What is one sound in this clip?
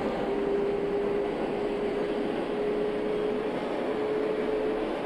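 A subway train rumbles steadily through a tunnel.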